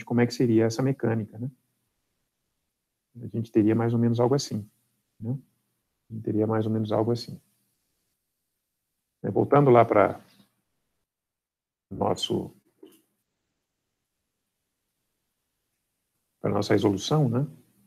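A man speaks calmly in short phrases over a microphone, heard as if through an online call.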